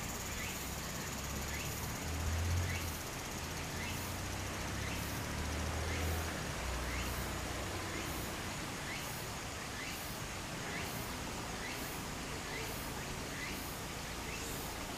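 Shallow water trickles steadily over stones.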